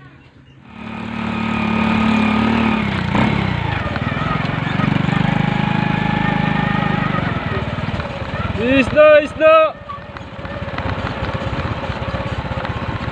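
A motorcycle engine hums as it rides along a bumpy dirt track.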